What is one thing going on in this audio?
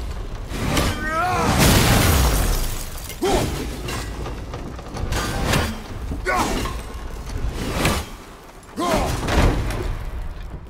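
An axe whooshes through the air several times.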